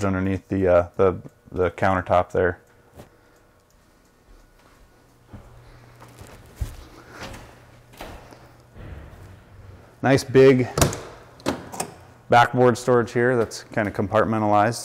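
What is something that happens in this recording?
A man speaks calmly and clearly close by.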